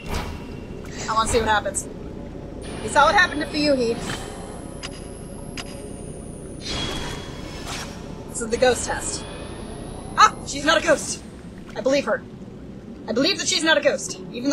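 A young woman talks casually and laughs close to a microphone.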